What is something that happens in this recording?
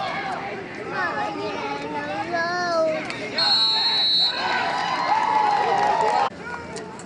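A crowd of spectators nearby shouts and cheers excitedly.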